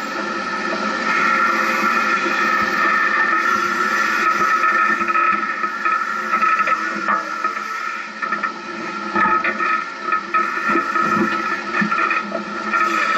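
Tyres crunch and bump over loose rocks and sand.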